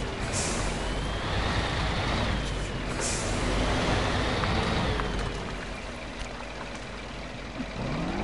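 A truck's tyres churn through thick mud.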